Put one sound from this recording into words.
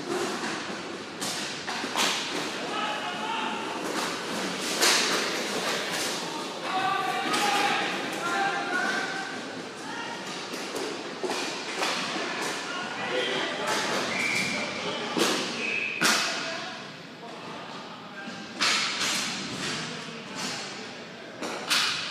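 Skate wheels roll and scrape on a hard floor.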